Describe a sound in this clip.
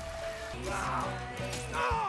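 Swords clash.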